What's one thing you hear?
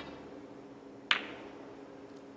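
Snooker balls click together.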